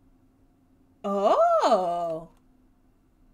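A young woman exclaims loudly into a microphone.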